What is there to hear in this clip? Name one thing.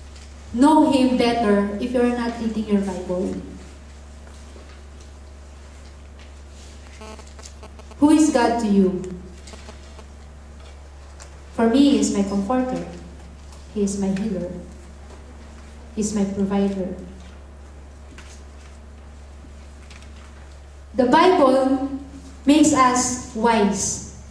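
A young woman speaks calmly through a microphone in phrases with long pauses.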